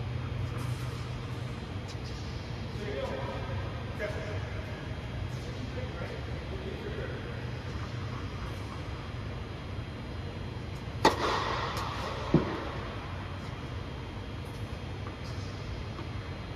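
A steady low hum of air blowers fills the hall.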